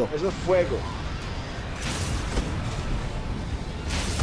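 A weapon fires bursts of flame with a loud roar.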